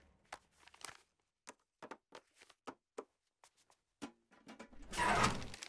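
Papers rustle and crinkle as they are shuffled by hand.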